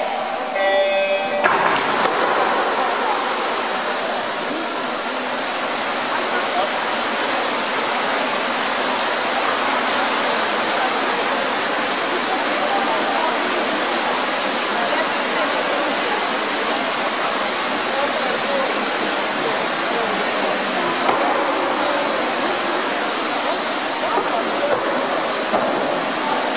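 A crowd of spectators cheers and chatters in the background.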